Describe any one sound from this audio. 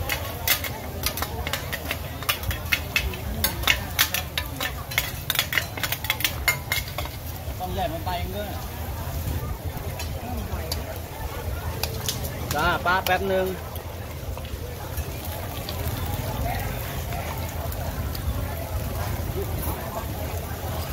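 Batter sizzles on a hot griddle.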